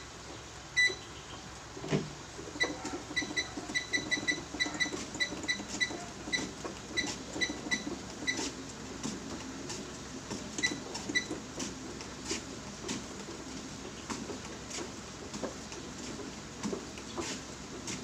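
Footsteps thud on a treadmill belt in a steady rhythm.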